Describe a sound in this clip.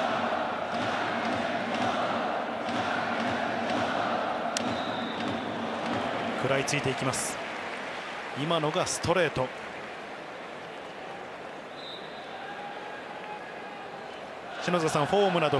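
A large crowd chants and cheers steadily in a big stadium.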